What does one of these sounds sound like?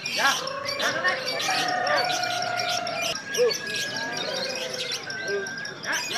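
Birds give long, clear whistles.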